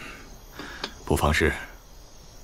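A middle-aged man answers calmly, close by.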